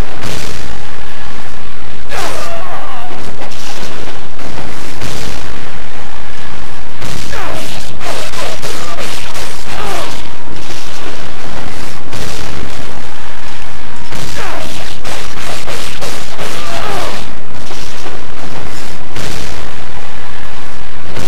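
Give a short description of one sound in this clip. Swords clash and slash in quick bursts.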